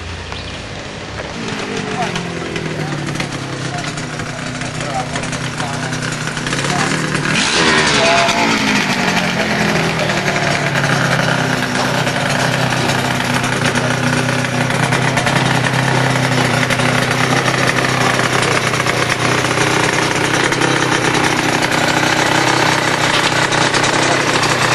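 A motorcycle engine rumbles and revs nearby.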